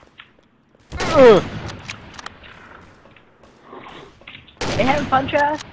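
A sniper rifle fires loud single shots.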